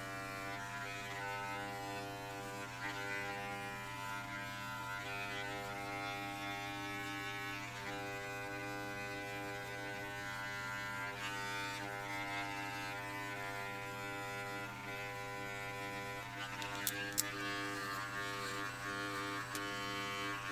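An electric trimmer buzzes steadily close by.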